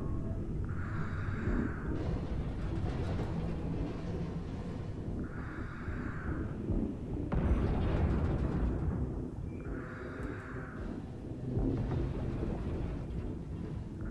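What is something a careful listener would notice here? A deep underwater rumble drones steadily.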